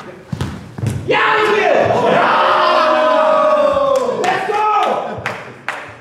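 Young men shout and cheer loudly in an echoing hall.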